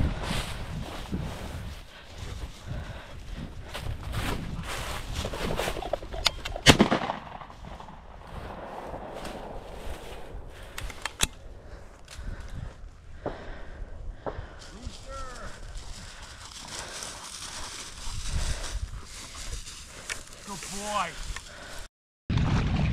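Footsteps crunch through dry grass.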